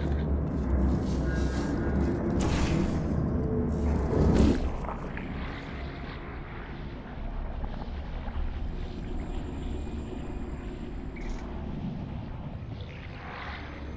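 A deep electronic hum drones steadily.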